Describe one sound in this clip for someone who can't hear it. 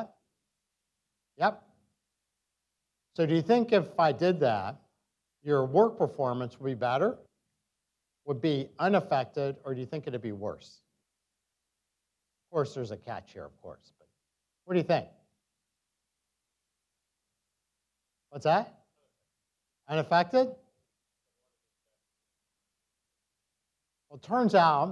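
A middle-aged man speaks calmly through a microphone, pausing often.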